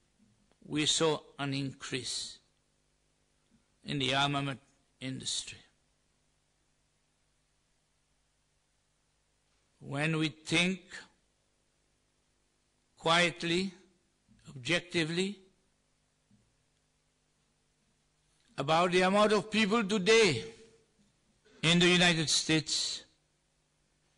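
A man speaks calmly through a microphone, with long pauses between phrases.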